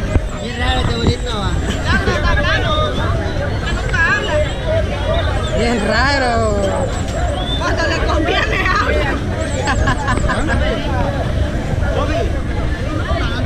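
A young man talks close by, casually.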